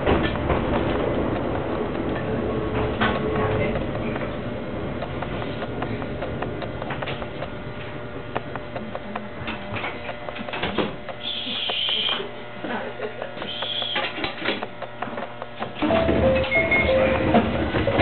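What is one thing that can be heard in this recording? A train rumbles and clatters along the rails.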